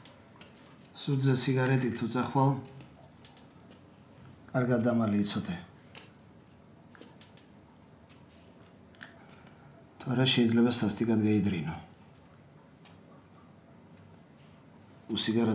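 A young man talks on a phone in short bursts.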